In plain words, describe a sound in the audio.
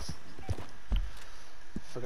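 A horse's hooves thud as it gallops over a dirt trail.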